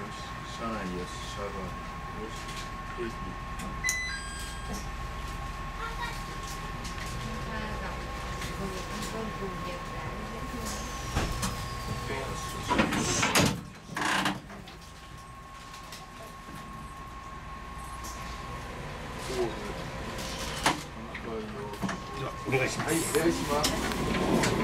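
A train's wheels clack over rail joints.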